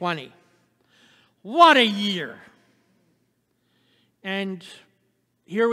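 An elderly man speaks expressively into a microphone, with pauses between phrases.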